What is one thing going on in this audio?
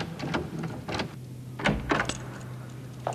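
A key rattles and turns in a door lock.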